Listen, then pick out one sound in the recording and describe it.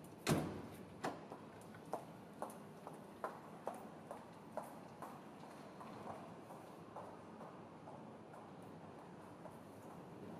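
High heels click on a hard floor in an echoing space.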